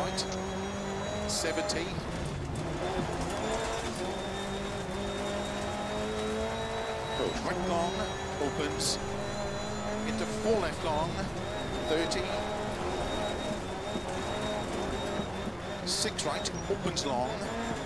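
A rally car engine roars and revs as it races along.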